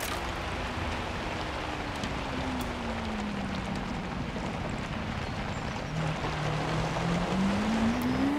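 Tyres rumble and crunch over a muddy dirt track.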